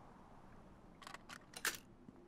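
A lock clicks as it is picked open.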